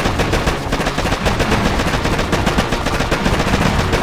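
A building explodes with a booming blast.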